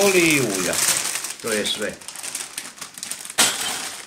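Plastic bags crinkle and rustle in hands.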